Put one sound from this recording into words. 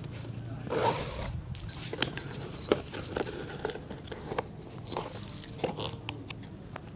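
Small taps and clicks sound as a shoe is handled.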